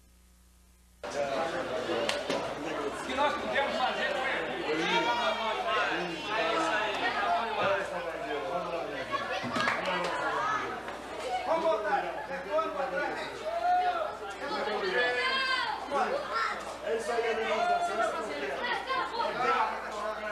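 A crowd of people talks and chants loudly in an echoing room.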